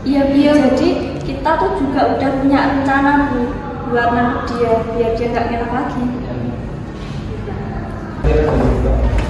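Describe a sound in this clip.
Young people speak calmly nearby.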